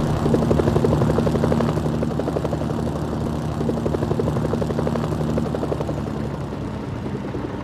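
A helicopter engine hums steadily.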